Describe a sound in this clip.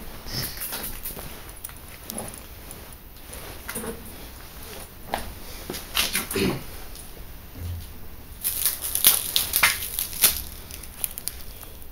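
Footsteps crunch and scrape on broken glass.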